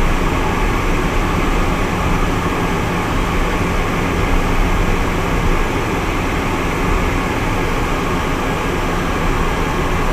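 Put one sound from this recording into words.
A small plane's engine drones loudly and steadily inside the cockpit.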